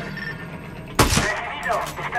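A rifle shot cracks sharply.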